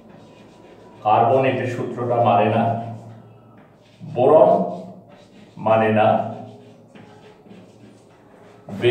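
A middle-aged man speaks calmly, explaining.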